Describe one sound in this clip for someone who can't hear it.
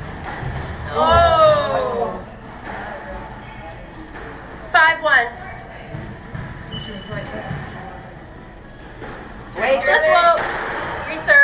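Young women shout and call out loudly in an echoing court.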